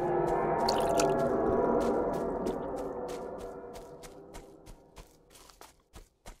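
Footsteps rustle through tall grass at a steady walking pace.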